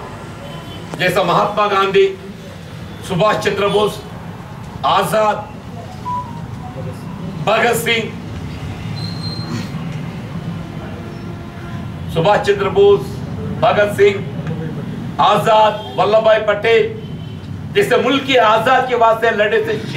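An elderly man speaks forcefully into nearby microphones, in bursts with pauses.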